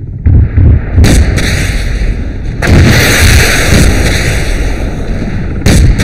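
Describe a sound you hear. A rocket launcher fires with a sharp, roaring blast.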